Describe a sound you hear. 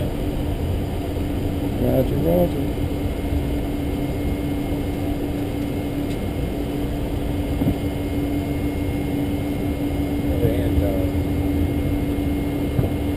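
An aircraft engine hums steadily in a loud cabin.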